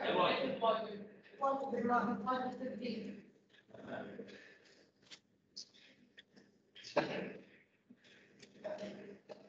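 A man talks calmly through an online call.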